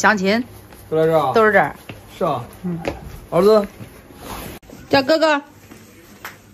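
A young man talks cheerfully close by.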